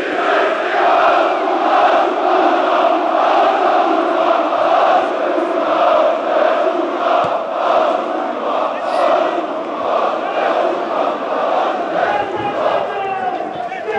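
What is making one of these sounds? A large stadium crowd chants and sings loudly and rhythmically in an open echoing space.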